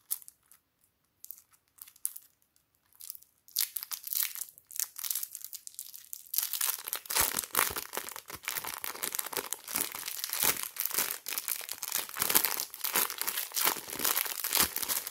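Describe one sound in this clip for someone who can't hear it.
Fingers squish and squeeze soft slime with wet, sticky sounds.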